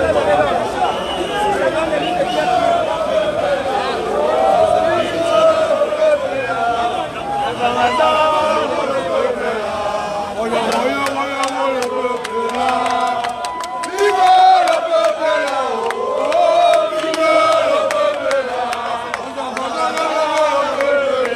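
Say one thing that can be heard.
A large crowd of men and women sings and chants loudly outdoors.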